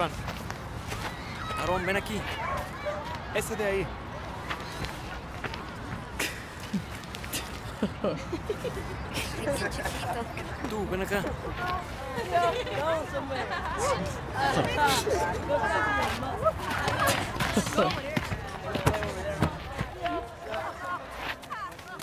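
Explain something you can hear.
Teenage boys talk and tease nearby.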